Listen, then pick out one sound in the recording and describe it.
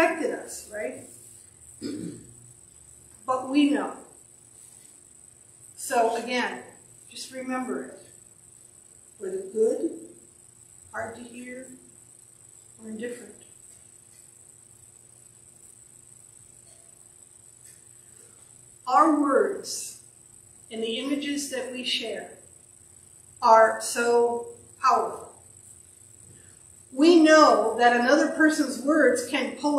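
An elderly woman speaks calmly into a close microphone, with pauses.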